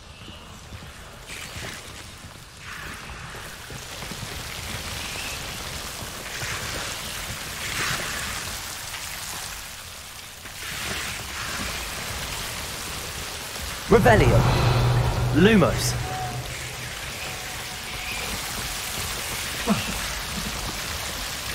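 Footsteps tread over stone and rubble.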